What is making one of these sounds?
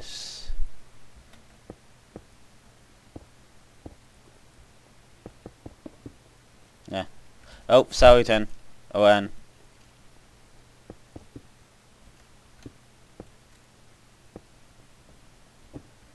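Stone blocks are dug and placed with soft, short thuds.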